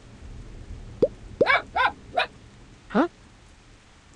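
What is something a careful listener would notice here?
A dog barks several times.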